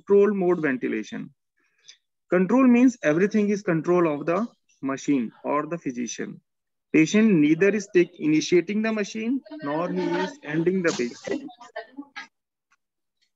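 A man lectures calmly over an online call.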